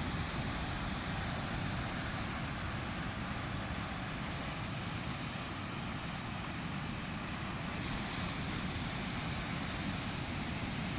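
Heavy surf crashes and roars steadily against rocks.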